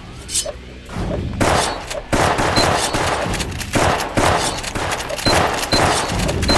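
Blaster shots fire in rapid bursts.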